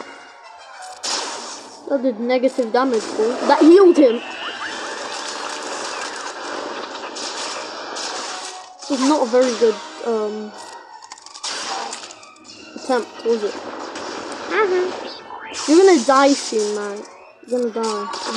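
Laser blasts and battle effects crackle in bursts.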